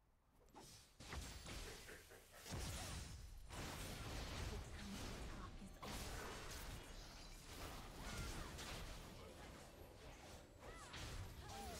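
Game spells and attacks crash and whoosh during a fight.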